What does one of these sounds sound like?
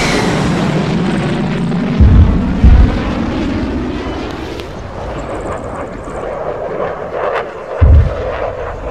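Jet engines roar steadily overhead.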